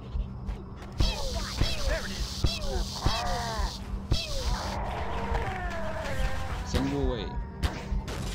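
A plasma gun fires with sizzling zaps.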